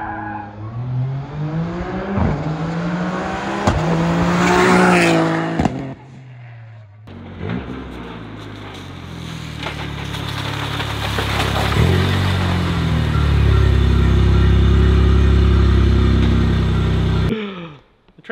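A car engine revs and roars nearby.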